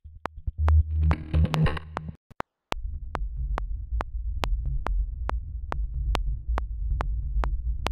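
A metronome ticks steadily.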